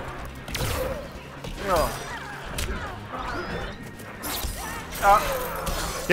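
Men talk and exclaim with animation close to a microphone.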